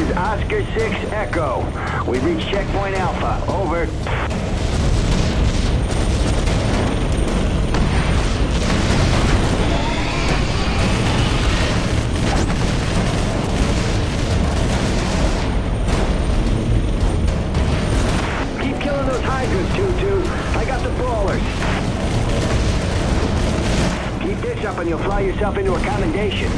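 Gunfire rattles rapidly and continuously.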